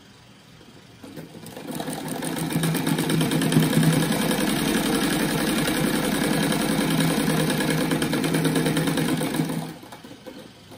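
A sewing machine whirs rapidly as it stitches fabric.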